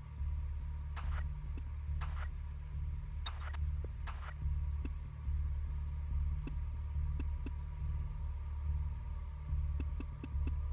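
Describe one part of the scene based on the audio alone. Game menu clicks sound as selections change.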